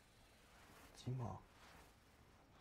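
A young man speaks briefly in a low voice.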